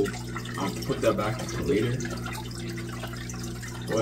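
Water splashes lightly as a hand moves in a tank.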